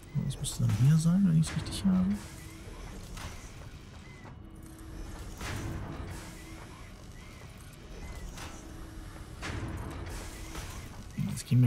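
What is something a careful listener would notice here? Soft electronic whooshes sound now and then as building parts snap into place.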